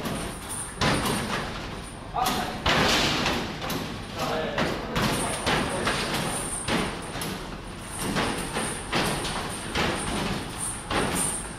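Basketballs thud against a machine's backboard and rim.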